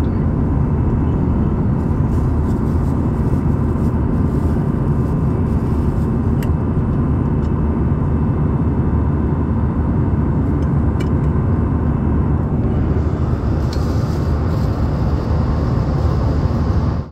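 A jet engine roars steadily with a deep, constant rumble.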